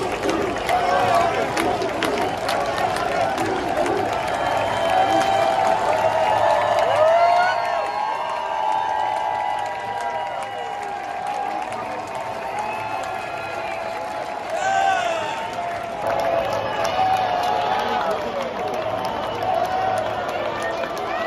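A large crowd of men and women sings and chants loudly in a big open stadium.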